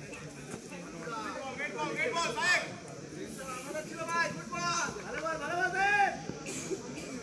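A man speaks excitedly, heard over a loudspeaker.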